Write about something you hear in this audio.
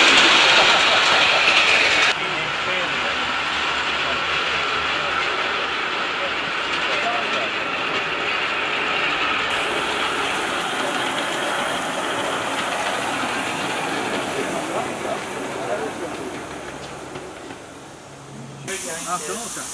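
A small steam locomotive rumbles and clatters along a track.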